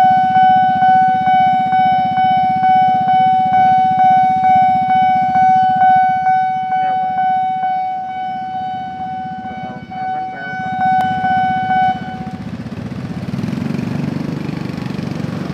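Motorbike engines idle and rumble nearby.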